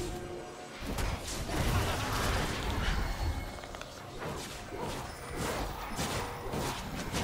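Game spell effects whoosh and clash during a fight.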